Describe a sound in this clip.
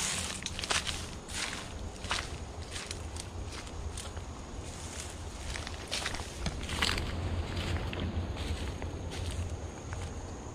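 Dry grass and reeds rustle and crunch underfoot.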